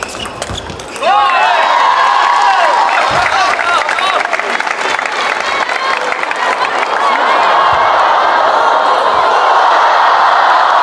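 A crowd in a large hall cheers and shouts loudly.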